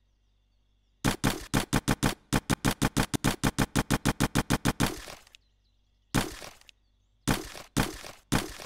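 Rapid menu clicks sound as inventory items are moved.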